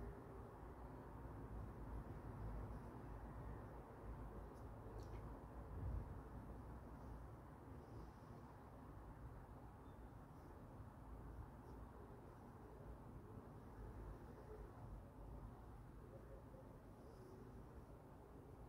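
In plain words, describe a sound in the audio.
A brush swishes softly across paper.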